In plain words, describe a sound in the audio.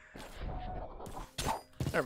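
A magic staff strikes a creature with a sharp zap.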